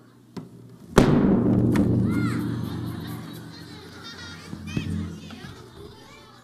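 A bass drum booms once and rings out slowly.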